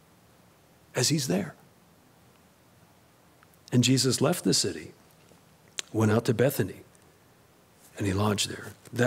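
A man speaks calmly into a microphone, reading out in short phrases with pauses.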